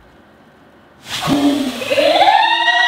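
Popcorn bursts up with a sudden loud whoosh.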